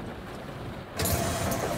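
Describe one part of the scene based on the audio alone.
Bus doors open with a loud hiss of air.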